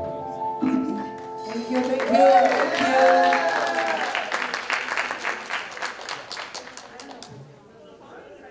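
A small band plays a short tune in a large echoing hall.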